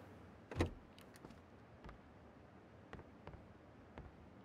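Footsteps thud on a wooden floor indoors.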